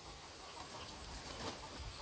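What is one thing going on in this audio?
A duck flaps its wings.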